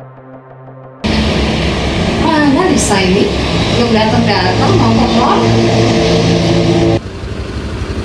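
A woman talks on a phone.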